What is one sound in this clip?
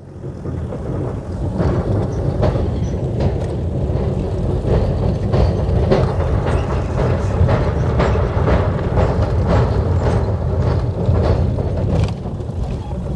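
Tyres clatter and thump over a metal bridge deck.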